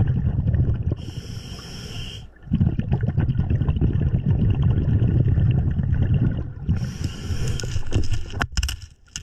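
A diver draws a hissing breath through a regulator.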